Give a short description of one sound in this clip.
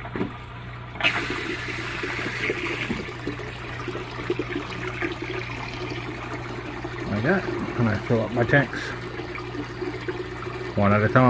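Water gushes from a hose into a tank with a steady splashing rush.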